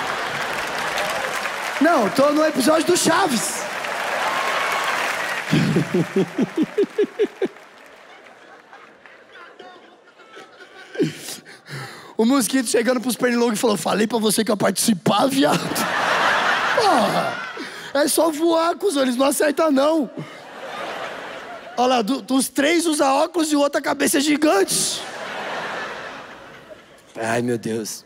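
A large audience laughs and cheers.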